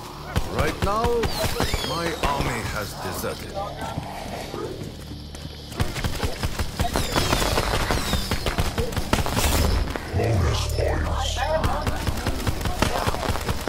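Zombies growl and snarl nearby.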